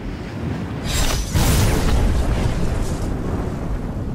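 A thunderclap cracks and rumbles.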